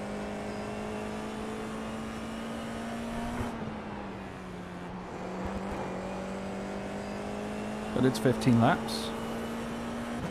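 A racing car engine hums steadily at high speed.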